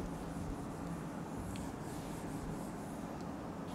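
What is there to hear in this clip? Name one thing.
A felt eraser rubs across a whiteboard.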